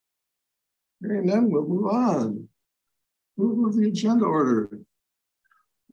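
A man speaks calmly, heard through a microphone.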